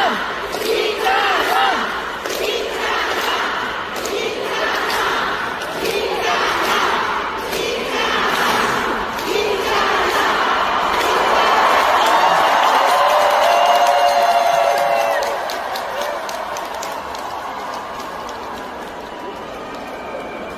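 A male singer sings through loudspeakers.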